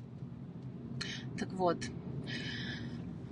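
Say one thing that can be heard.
A young woman speaks close by, calmly.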